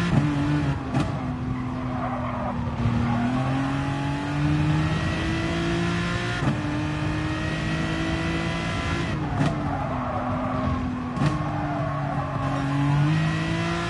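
Tyres squeal through the corners.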